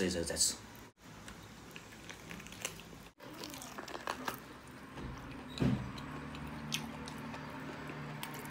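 A man chews meat noisily.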